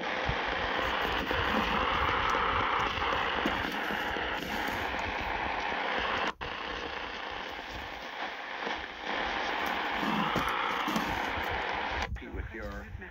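A radio hisses with static and crackle.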